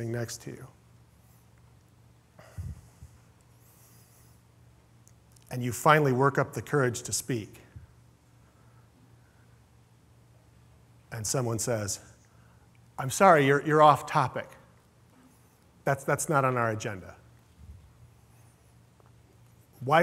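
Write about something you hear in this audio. A man speaks calmly through a microphone in short bursts with long pauses.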